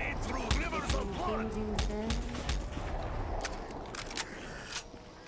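Gunshots crack repeatedly in a video game.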